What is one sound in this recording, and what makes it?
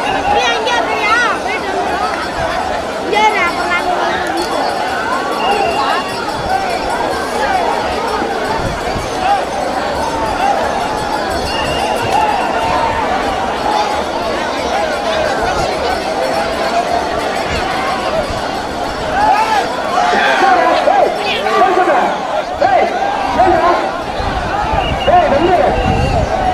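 A large crowd of men shouts and chants outdoors.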